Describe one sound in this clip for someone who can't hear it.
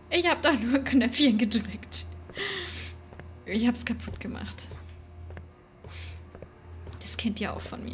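A young woman laughs into a close microphone.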